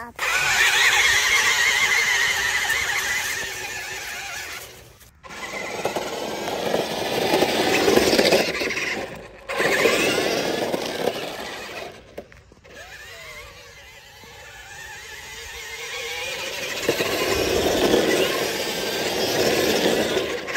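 A toy car's electric motor whines as it drives.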